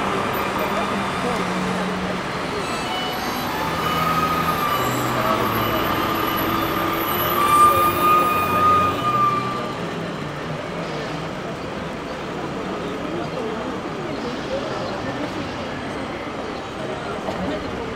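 Footsteps of many people walk on pavement.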